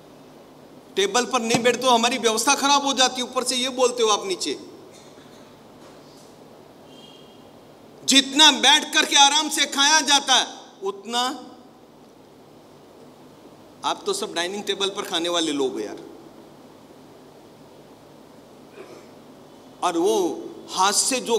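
An elderly man speaks calmly and deliberately, close to a microphone, with long pauses.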